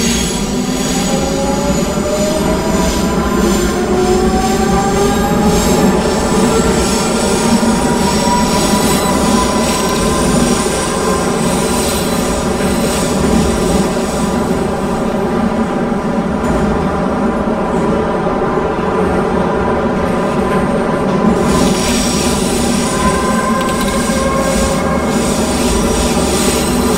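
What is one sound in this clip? A train's electric motors whine, rising and falling in pitch.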